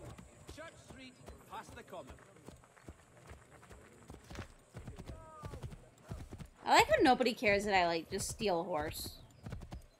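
Horse hooves clop along a dirt road.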